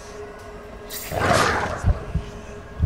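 A magical burst whooshes loudly and fades.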